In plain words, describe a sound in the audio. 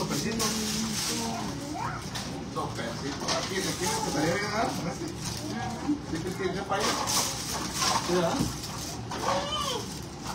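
Dishes clatter in a cupboard.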